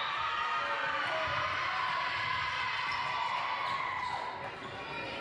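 Young women shout and cheer together in a large echoing gym.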